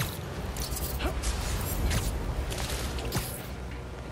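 Air whooshes past during a fast swing through the air.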